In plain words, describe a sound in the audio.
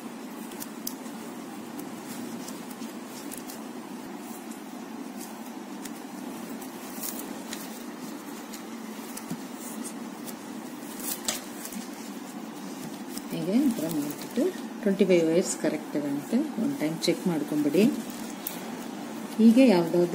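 Plastic strips rustle and click softly as they are woven by hand.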